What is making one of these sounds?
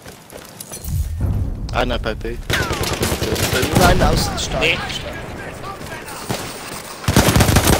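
Rifles fire in rapid bursts with loud cracks.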